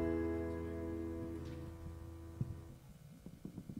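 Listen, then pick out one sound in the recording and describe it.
A band's final chord on keyboard and guitar fades away.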